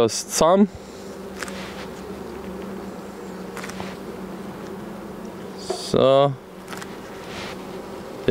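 Wooden hive frames scrape and knock.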